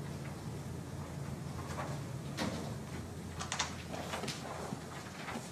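A large paper sheet rustles as it is flipped.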